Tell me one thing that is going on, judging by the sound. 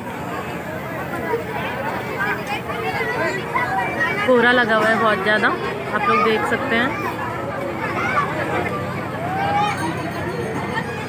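A large outdoor crowd of men, women and children chatters all around.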